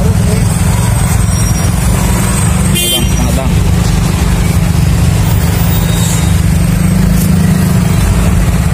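A motorbike engine idles with a steady low rumble.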